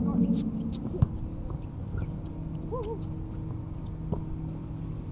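A basketball bounces on an outdoor court.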